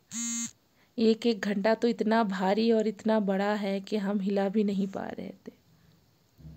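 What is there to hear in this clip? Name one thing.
A woman sings close by.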